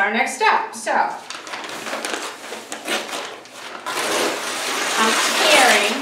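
Stiff paper rustles and crinkles as it is lifted and folded.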